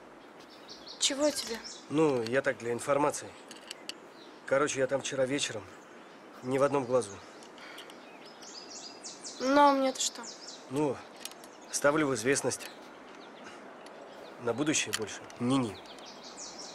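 A young man speaks calmly in a low voice, close by.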